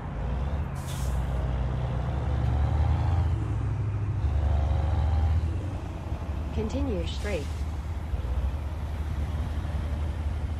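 Car and truck engines rumble steadily in passing traffic.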